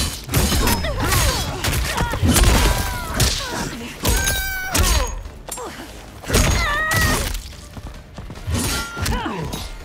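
Blades swish and clang.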